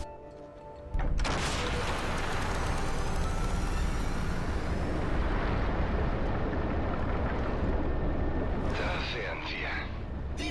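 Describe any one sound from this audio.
A deep rumbling roar swells as a glowing ring powers up.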